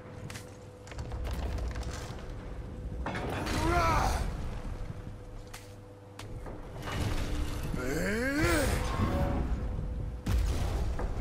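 Heavy stone gates grind and rumble as they swing open.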